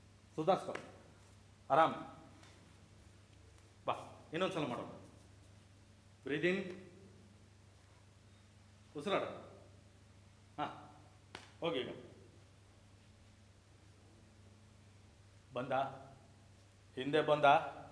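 A young man speaks loudly in short, forceful bursts in an echoing hall.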